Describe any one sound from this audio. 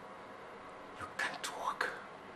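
A young man speaks a few sharp words nearby.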